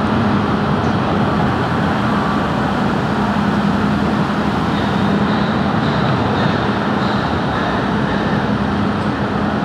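A construction crane's engine rumbles.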